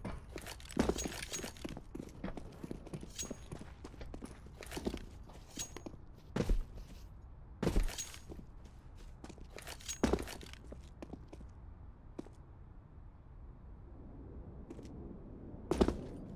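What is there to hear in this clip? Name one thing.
Footsteps thud and scrape steadily on hard ground.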